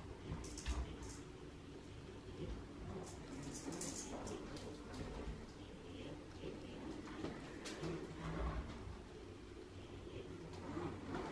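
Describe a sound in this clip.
A hoverboard's wheels roll and hum over a wooden floor.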